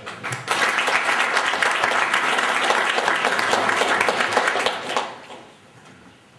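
An audience claps loudly, then the applause quickly dies away.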